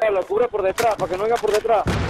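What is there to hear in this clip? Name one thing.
A rifle magazine is swapped during a reload in a video game.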